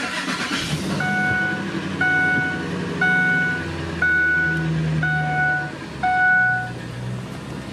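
A warning chime beeps at an even pace.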